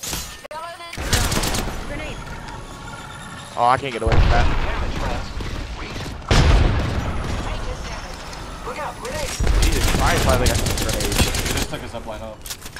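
Gunshots fire in loud, rapid bursts.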